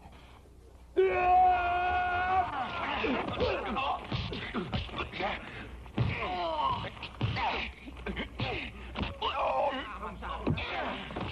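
A crowd of men shouts and cheers loudly.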